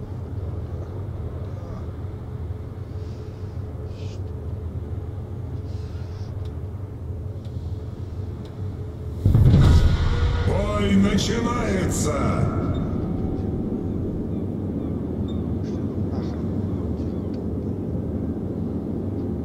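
Sea water washes and splashes against a ship's hull.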